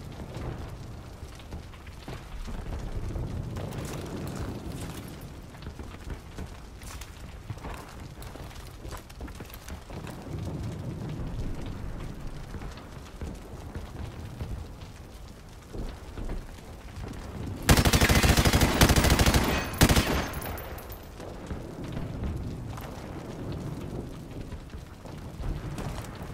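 Fires crackle and roar.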